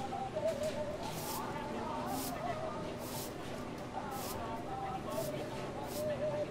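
A broom sweeps a hard floor in steady, repeated strokes.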